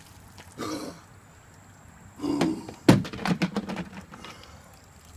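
A man shouts and gasps outdoors.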